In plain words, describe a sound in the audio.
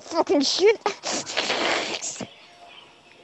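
Game ink sprays and splatters with a wet hiss.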